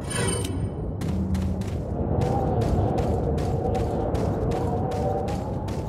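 Quick footsteps run over gritty ground.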